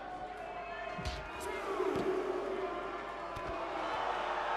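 Wrestlers slam heavily onto a ring mat with dull thuds.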